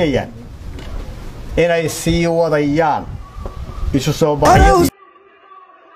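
A man speaks forcefully through a microphone.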